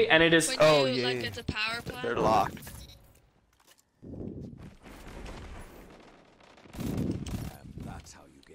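Gunfire bursts in quick shots.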